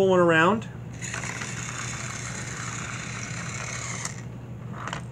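A toy train whirs along a plastic track.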